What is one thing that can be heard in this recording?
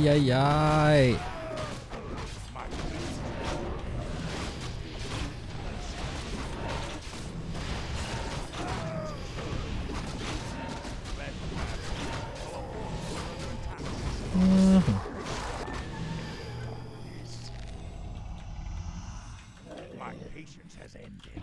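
Game battle sounds clash, with spell effects zapping.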